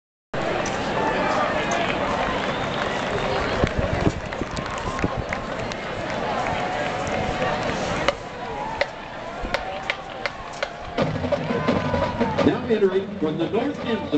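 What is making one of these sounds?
A large crowd chatters and cheers outdoors in a stadium.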